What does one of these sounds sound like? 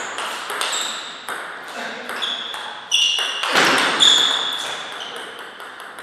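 A ping-pong ball clicks sharply back and forth off paddles and a table in a quick rally, ringing in an echoing hall.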